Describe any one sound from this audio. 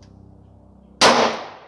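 A pistol fires a single loud shot outdoors, with a short echo.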